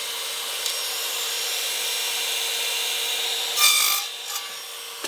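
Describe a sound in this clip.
An electric saw motor whirs steadily, then winds down.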